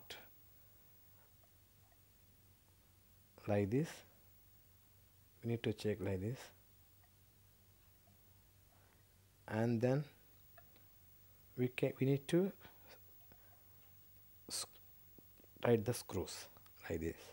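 A small metal clip clicks softly as it is fitted and tightened by hand.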